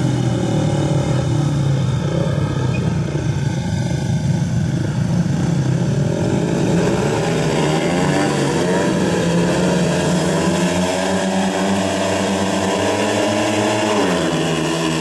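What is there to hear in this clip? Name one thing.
Several motorcycle engines idle and rev loudly.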